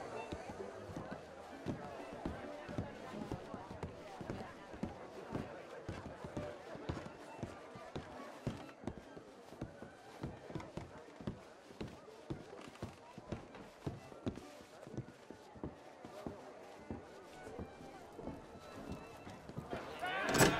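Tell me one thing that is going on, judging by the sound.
Footsteps thud on wooden stairs and floorboards at a steady walking pace.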